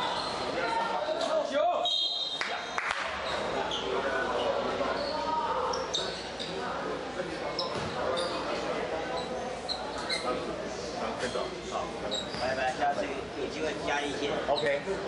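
Voices of players and spectators echo in a large hall.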